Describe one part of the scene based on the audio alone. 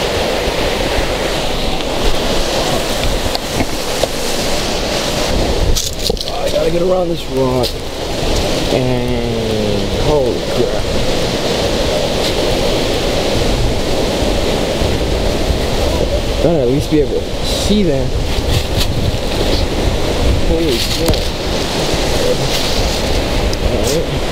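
A stream rushes over rocks nearby.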